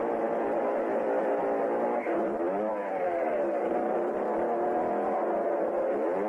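A motorcycle engine sputters and revs as it climbs.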